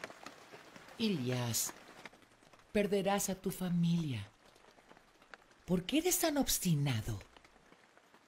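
A middle-aged woman speaks earnestly and close by.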